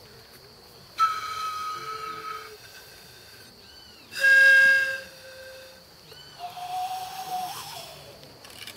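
A woman sings long, held notes nearby.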